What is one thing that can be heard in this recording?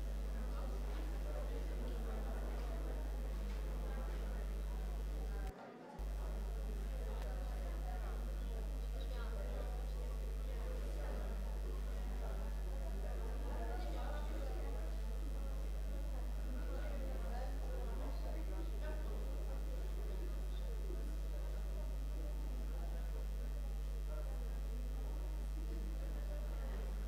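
A crowd of people murmurs and chats quietly, indoors.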